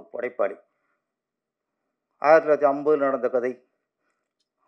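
A middle-aged man speaks calmly into a microphone in bursts, heard through loudspeakers.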